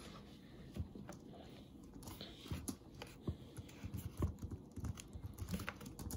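A finger taps lightly on a touchscreen.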